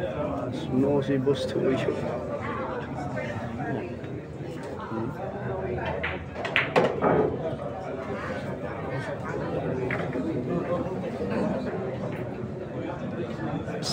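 A crowd of young men chatter nearby.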